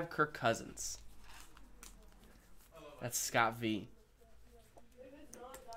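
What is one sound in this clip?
A plastic card wrapper crinkles between fingers.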